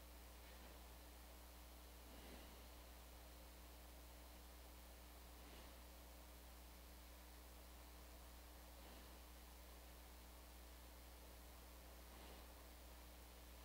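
A man breathes slowly and softly close to a microphone.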